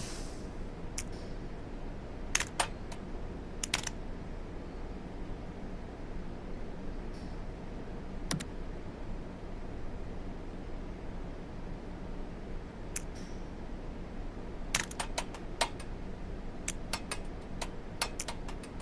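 Small plastic and metal parts click and clatter as they are handled.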